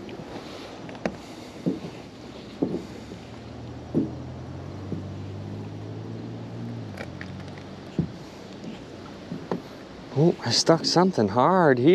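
A wet rope knocks against a boat's side.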